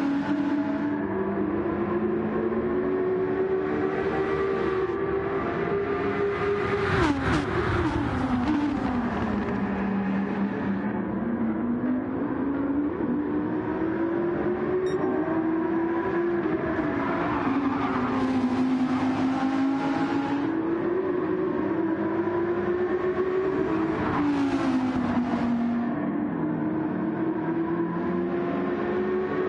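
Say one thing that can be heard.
A racing car engine roars steadily, its pitch rising and falling with gear changes.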